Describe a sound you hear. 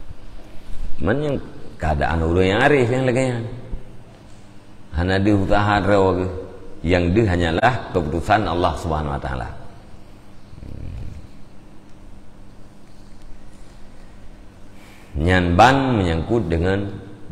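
A middle-aged man speaks with animation, in a chanting, drawn-out voice, close to a microphone.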